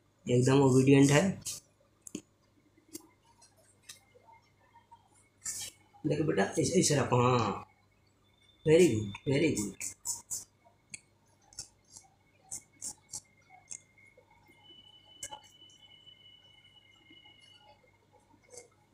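A straight razor scrapes softly against hair and skin.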